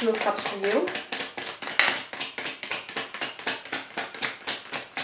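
Playing cards are shuffled with quick, rapid riffling flicks.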